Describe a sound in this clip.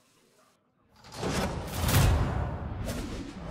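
A loud whoosh and clash ring out as a battle begins in a game.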